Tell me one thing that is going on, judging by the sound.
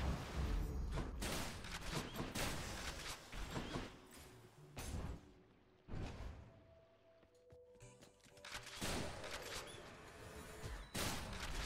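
Video game combat sounds burst and clash loudly.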